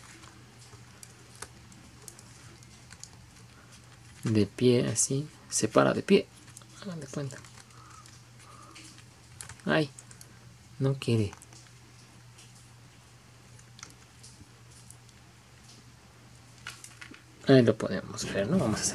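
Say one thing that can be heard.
Plastic toy parts click and snap as hands fit them together.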